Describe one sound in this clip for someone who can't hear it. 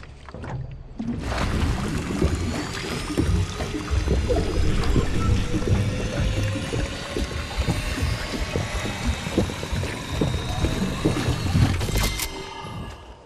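An electric charge crackles and hums as it builds.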